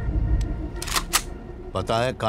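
A pistol clicks sharply as it is cocked.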